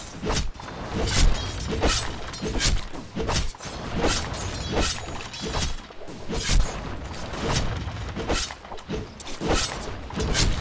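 Game weapons strike and spells burst in a fight.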